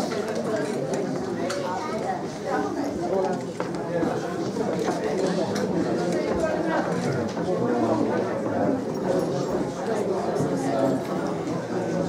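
A crowd of adults chats in a large hall.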